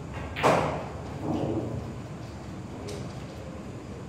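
Billiard balls knock together and roll across the table.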